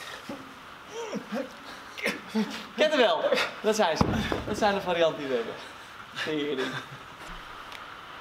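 A second man laughs and chats.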